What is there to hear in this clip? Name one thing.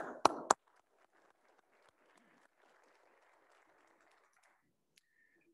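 A small audience claps softly.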